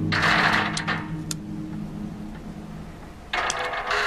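A safe dial clicks softly as it turns.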